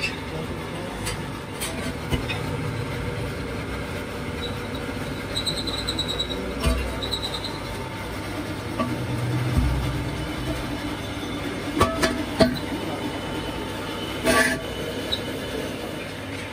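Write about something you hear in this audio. A long metal pipe clanks and knocks against the ground.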